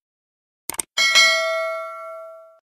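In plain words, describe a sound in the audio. A bell chimes and rings out.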